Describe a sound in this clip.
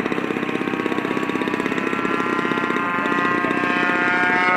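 A model jet whines as it flies past overhead.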